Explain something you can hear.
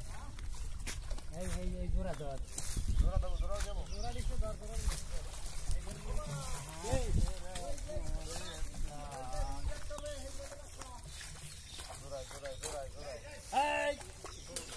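Water splashes as boys wade through a pond.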